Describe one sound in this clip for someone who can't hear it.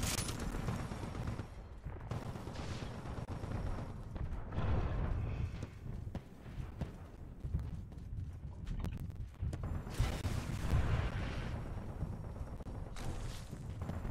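Gunfire and game sounds play from a video game.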